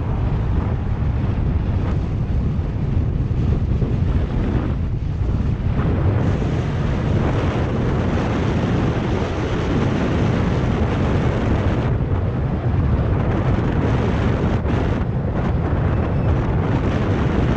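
Wind rushes loudly past a fast-moving bicycle rider.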